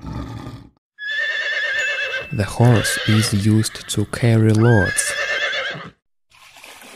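A pony whinnies.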